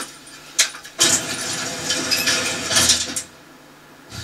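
Elevator doors slide shut with a rumble.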